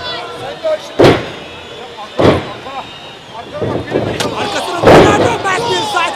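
Bodies thud heavily onto a wrestling ring's canvas.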